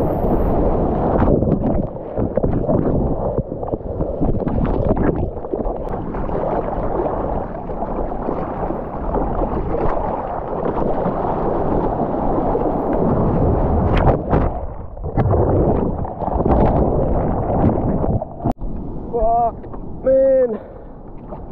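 Seawater rushes and splashes around a surfboard moving through the sea.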